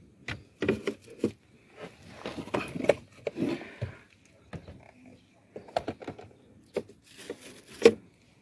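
A plastic filter rattles and clicks as it is lifted and moved about.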